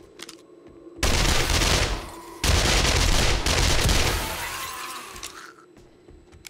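Gunshots fire in loud rapid bursts.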